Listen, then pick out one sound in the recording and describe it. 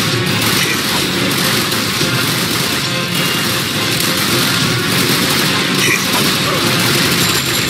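Laser blasts zap and crackle rapidly.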